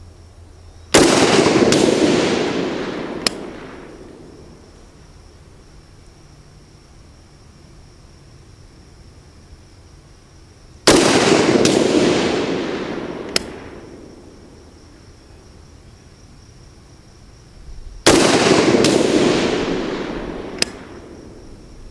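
A rifle fires loud single shots outdoors, each echoing away through the woods.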